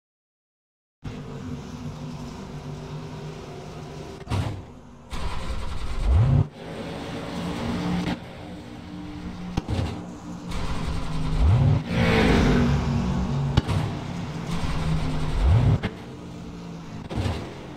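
A race car engine idles with a low, steady rumble.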